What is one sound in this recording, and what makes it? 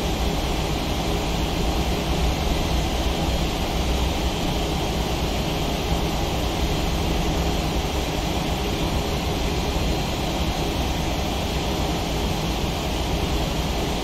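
Jet engines rumble steadily as an airliner taxis.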